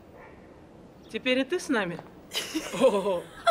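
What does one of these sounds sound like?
A young woman speaks calmly up close.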